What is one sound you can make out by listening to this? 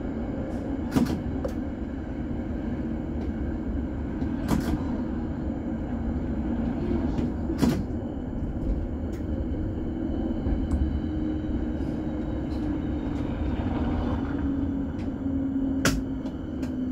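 Tram wheels knock sharply over rail joints now and then.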